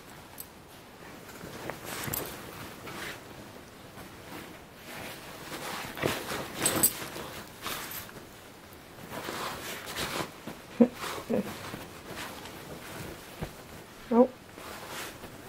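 Two dogs growl playfully as they wrestle.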